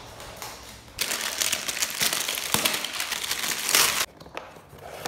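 Plastic wrap crinkles and rustles as it is torn off a box.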